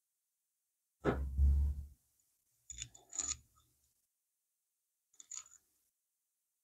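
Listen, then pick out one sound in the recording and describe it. A small metal tool clicks and scrapes against a wooden piece.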